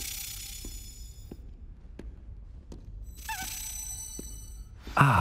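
Footsteps tap on a hard floor in a reverberant hall.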